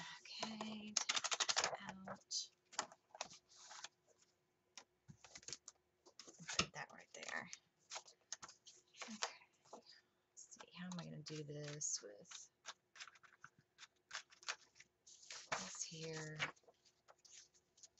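Paper pages rustle and flap as they are handled.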